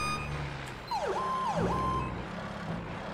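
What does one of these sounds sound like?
A siren whoops briefly as the truck pulls away.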